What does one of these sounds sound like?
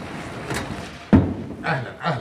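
A door knocks shut.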